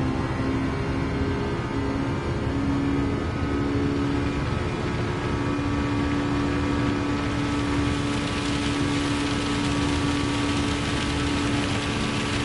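Rain patters on a car.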